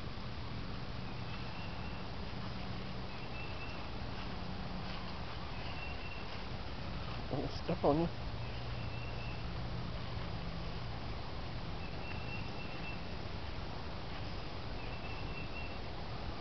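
Dry leaves rustle under a cat's paws.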